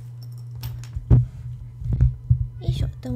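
Hands bump and rub against a microphone with dull thumps.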